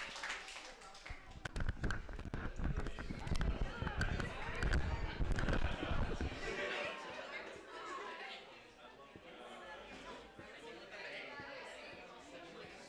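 A crowd murmurs and chatters in a room.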